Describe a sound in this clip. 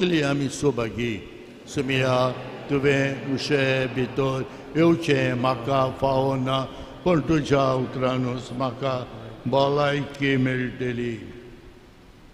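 An elderly man speaks steadily through a microphone in a large echoing hall.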